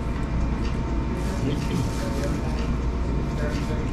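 A plastic bag rustles and crinkles.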